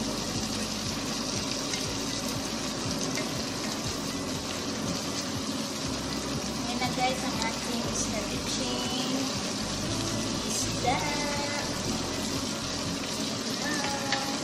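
Food sizzles and hisses steadily in a hot pan.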